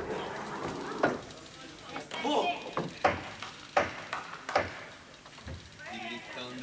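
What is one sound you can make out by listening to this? A ball bounces on a hard floor with sharp thuds.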